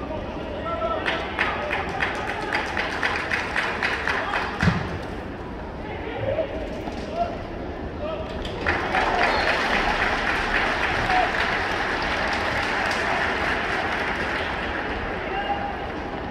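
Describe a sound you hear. A stadium crowd claps and chants in rhythm.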